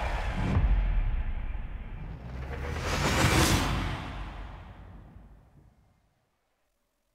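A car engine roars loudly and fades away.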